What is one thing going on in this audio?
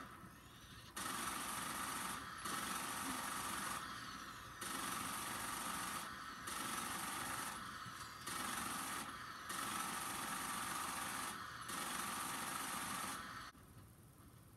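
A heavy gun fires in long, rapid bursts.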